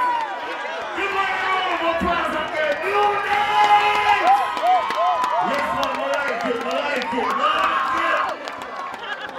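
A man shouts with animation through a loudspeaker microphone.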